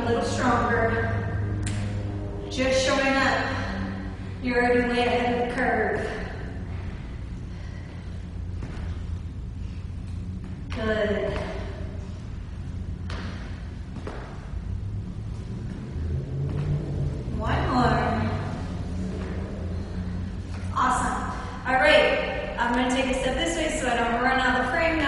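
A young woman speaks with energy, close by.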